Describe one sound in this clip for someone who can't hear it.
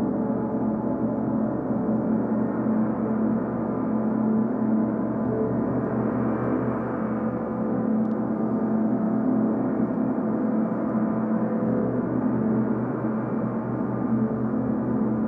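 Large gongs hum and shimmer with a deep, steady, swelling drone.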